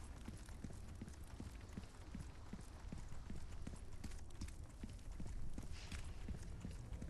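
Footsteps tread steadily and quickly on stone.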